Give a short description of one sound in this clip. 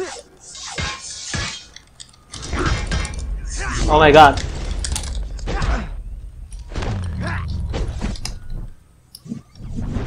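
Swords swish and clash in a fight.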